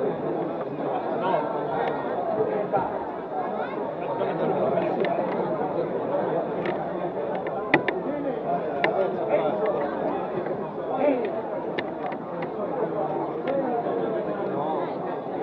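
A crowd of men and women chatters loudly all around, close by.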